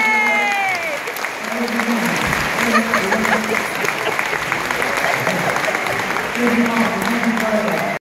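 A crowd claps in a large echoing hall.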